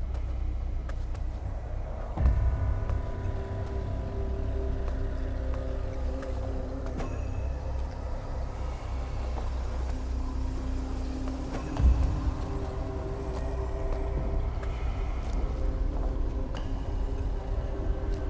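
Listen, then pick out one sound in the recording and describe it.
Footsteps splash on a wet floor.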